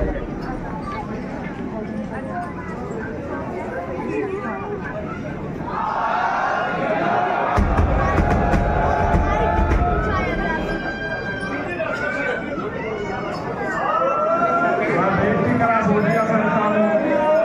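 A dense crowd of men and women talks and calls out all around, close by.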